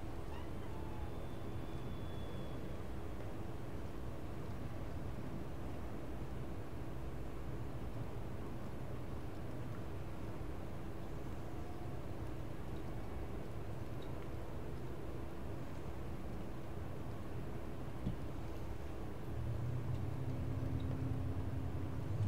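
Footsteps clank softly on a metal floor.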